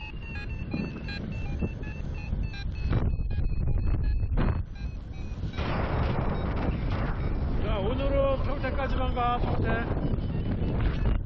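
Strong wind rushes and buffets loudly outdoors.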